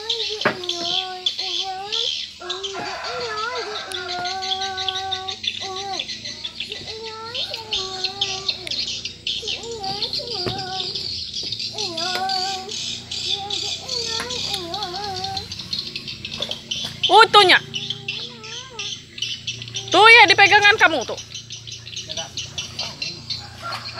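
A young boy talks nearby with animation.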